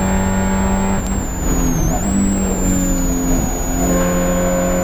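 A Spec Miata's four-cylinder engine lifts off and downshifts, then climbs back to high revs.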